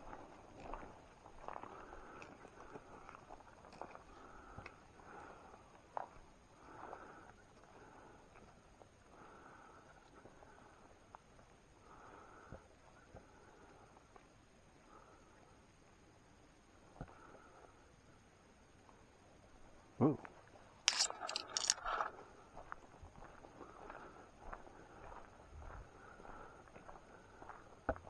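Footsteps crunch and shuffle through leaves on a forest floor.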